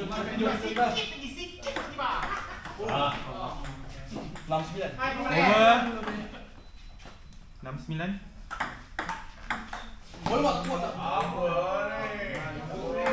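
Young men talk and laugh loudly nearby.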